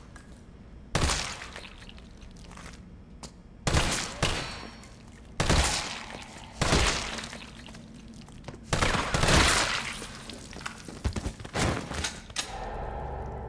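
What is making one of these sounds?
Gunshots boom in short bursts and echo.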